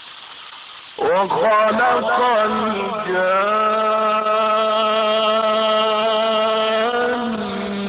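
An elderly man recites in a long, drawn-out singing voice.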